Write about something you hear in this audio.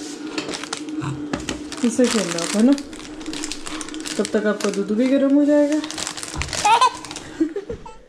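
Foil crinkles in a baby's hands.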